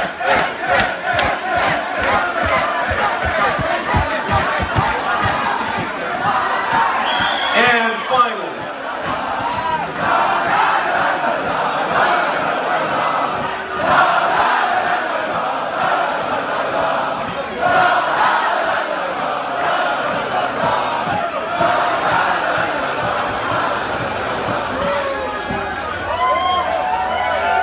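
A large crowd chants and sings loudly in a big echoing tent.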